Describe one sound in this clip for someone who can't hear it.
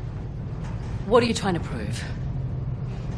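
A woman answers calmly.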